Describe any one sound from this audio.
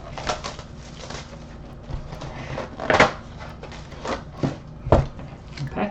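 Plastic wrapping crinkles as it is torn open.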